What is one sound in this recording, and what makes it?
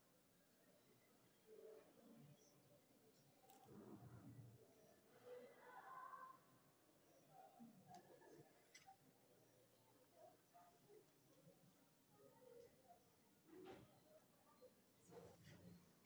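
A pencil scratches lines on paper.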